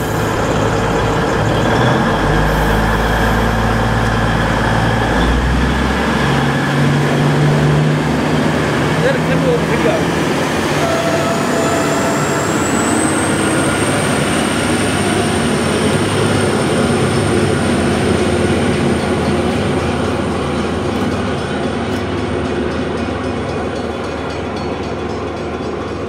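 A train rumbles past close by on its tracks and slowly fades into the distance.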